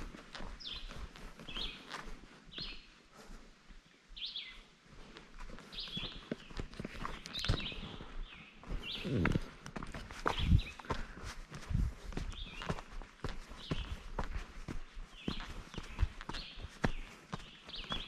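Footsteps crunch steadily on a dirt trail outdoors.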